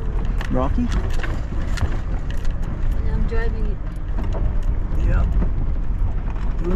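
Tyres crunch and rattle over a gravel road.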